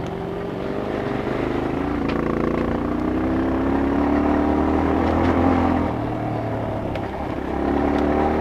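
Knobby tyres rumble and bump over a dirt trail.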